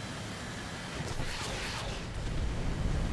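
Rockets whoosh away in quick succession.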